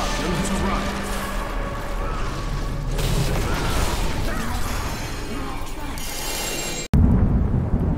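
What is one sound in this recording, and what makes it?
Spells and weapons clash, with crackling blasts and hits.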